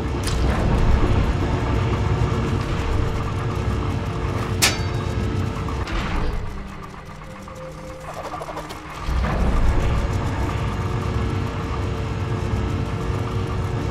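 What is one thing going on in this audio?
Spinning saw blades whir steadily.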